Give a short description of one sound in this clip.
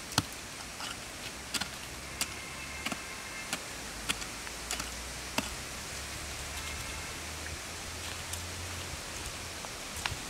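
A woman's hand tool scrapes and knocks into dry soil.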